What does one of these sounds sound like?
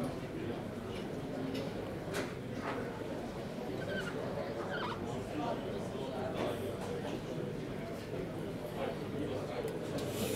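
Felt-tip pens squeak and scratch across paper.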